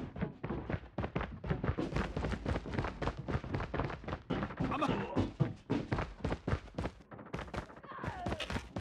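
Quick footsteps run across a hard metal floor.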